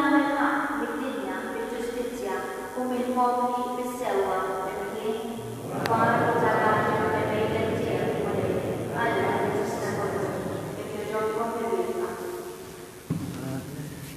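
A young person sings a melody into a microphone in a large echoing hall.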